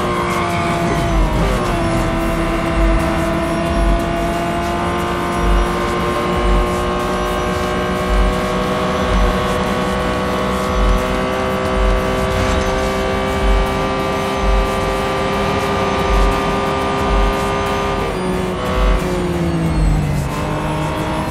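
A racing car engine roars at high revs, dropping in pitch as it shifts gears.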